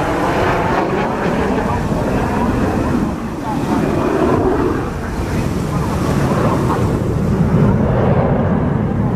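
A jet aircraft roars steadily overhead in the distance.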